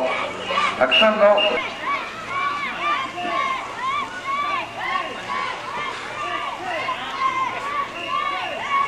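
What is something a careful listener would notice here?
A crowd of children and adults chants and shouts outdoors.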